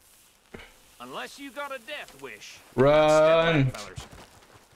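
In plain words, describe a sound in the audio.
A man speaks in a gruff, warning voice.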